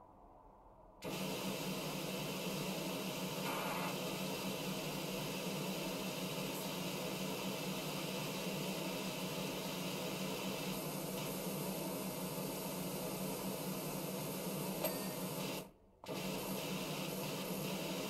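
A pressure washer sprays a hard, hissing jet of water against a metal wheel.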